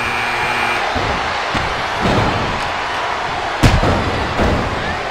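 Heavy thuds land as wrestlers slam onto the mat.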